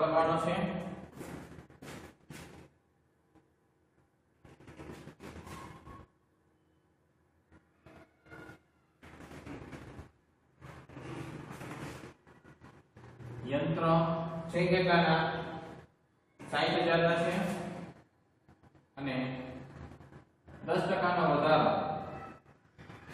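A man speaks in a steady explaining tone, close by.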